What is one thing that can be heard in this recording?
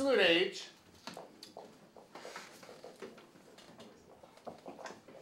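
Teenagers murmur and chat quietly in the background.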